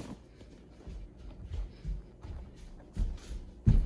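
A cardboard cereal box rattles as it is handled.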